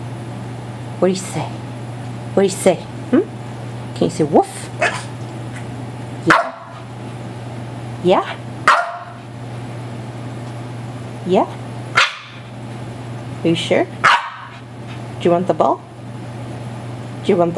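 A small dog whines and yelps in short bursts close by.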